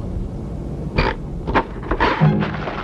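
A typewriter clacks.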